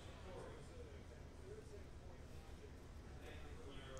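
Cards shuffle and slide against each other.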